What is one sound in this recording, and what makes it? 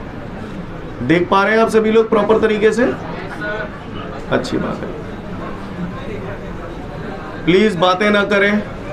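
A middle-aged man speaks into a microphone, explaining with animation.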